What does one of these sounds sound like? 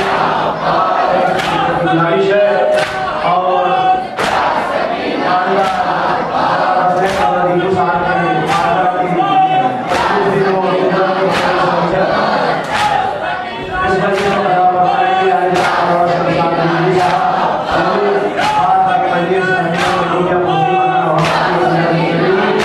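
Many hands beat on chests in a slow, steady rhythm.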